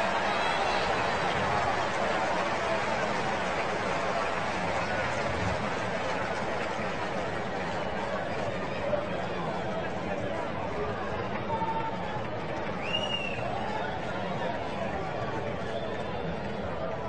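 A large crowd murmurs and chatters in an open-air stadium.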